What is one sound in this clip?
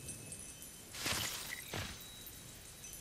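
A magical shimmering whoosh sweeps past.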